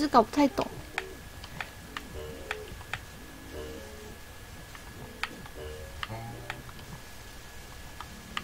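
Short, bright game blips sound as a small character jumps about.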